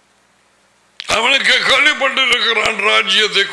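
An elderly man speaks calmly and close into a microphone.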